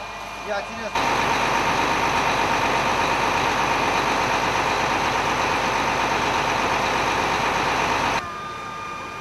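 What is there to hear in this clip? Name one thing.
A fire truck's engine rumbles steadily nearby.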